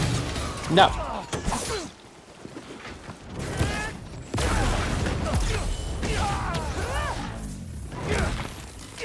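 Heavy blows land with sharp thuds and whooshes.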